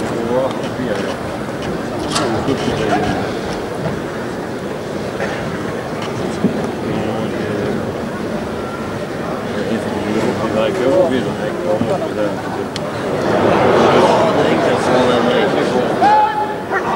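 A crowd of spectators murmurs and cheers outdoors.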